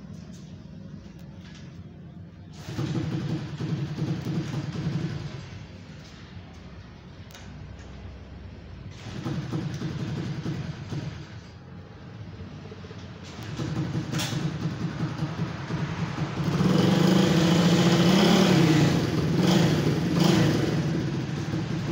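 A man kicks a motorbike's starter pedal repeatedly.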